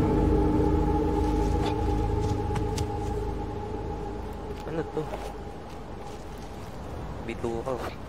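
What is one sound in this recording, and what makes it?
Light footsteps patter on soft ground.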